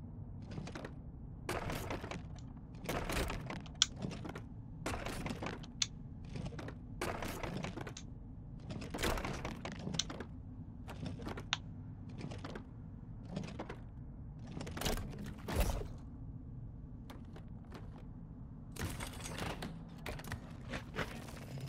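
A metal handle creaks and clicks as it is turned back and forth.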